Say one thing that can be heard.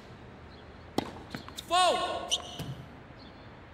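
A tennis ball bounces on a hard court a few times.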